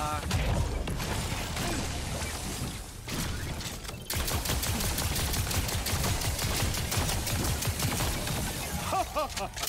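Rapid laser gunfire crackles and zaps.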